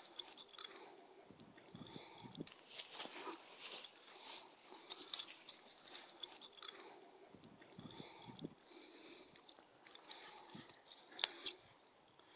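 Dogs scamper and rustle through dry grass close by.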